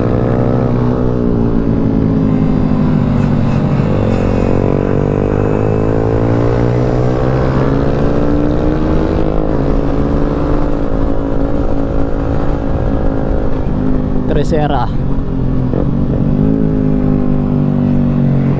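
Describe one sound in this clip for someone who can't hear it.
A motorcycle engine revs loudly up close, rising and falling in pitch as it shifts gears.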